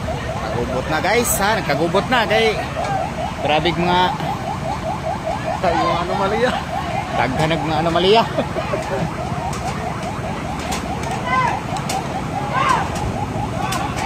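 A crowd of men and boys talks and shouts outdoors nearby.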